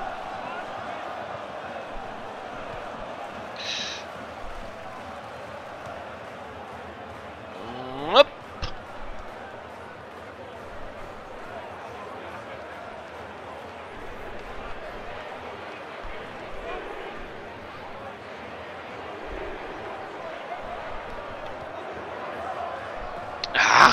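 A large crowd murmurs steadily, like a stadium crowd.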